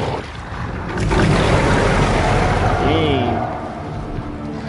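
A monstrous creature lets out a deep, loud roar.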